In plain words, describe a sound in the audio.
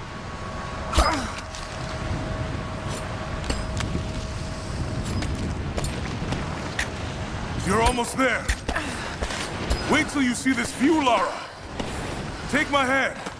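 An ice axe strikes into ice with sharp thuds.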